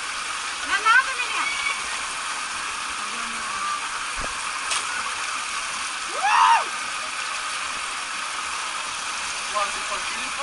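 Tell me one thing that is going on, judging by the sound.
Water rushes steadily down a slide, heard outdoors.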